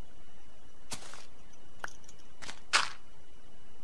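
Blocks thud softly as they are placed.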